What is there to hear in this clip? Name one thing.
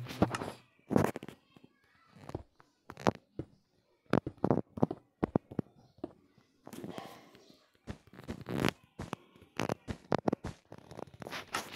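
Blocks are set down with short, soft thuds in quick succession.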